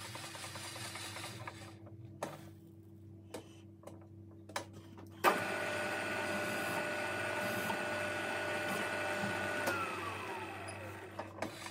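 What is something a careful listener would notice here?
A machine motor hums steadily.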